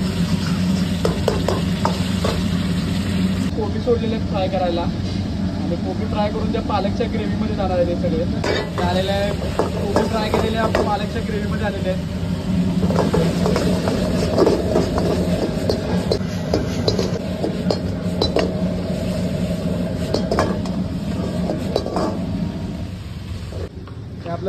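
A metal ladle scrapes and knocks against a wok.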